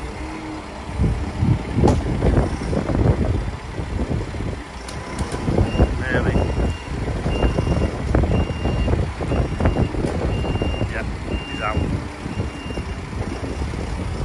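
A loader's diesel engine rumbles nearby.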